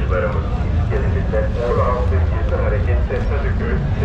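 A ferry engine rumbles low and steady nearby.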